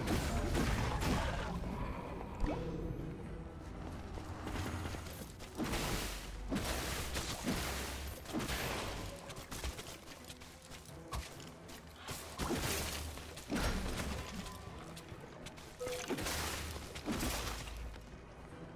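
Weapons clash and strike monsters in quick bursts of combat.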